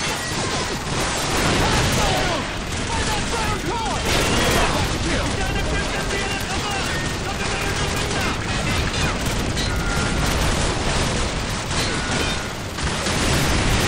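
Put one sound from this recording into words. Rifles fire in rapid bursts close by, with shots echoing off walls.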